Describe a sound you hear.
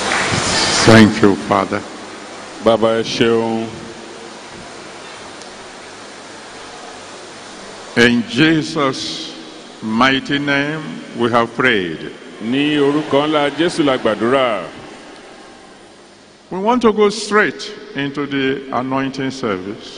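An elderly man speaks slowly into a microphone, heard through loudspeakers.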